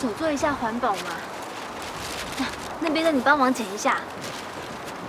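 A young woman speaks calmly outdoors, close by.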